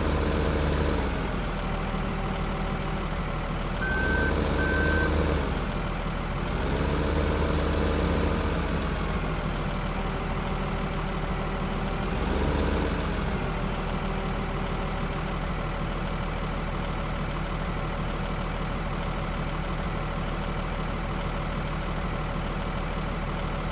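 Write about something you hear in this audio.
A wheel loader's diesel engine rumbles steadily and revs up and down.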